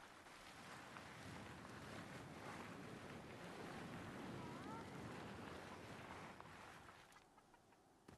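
Wind rushes loudly past during a fast slide down a slope.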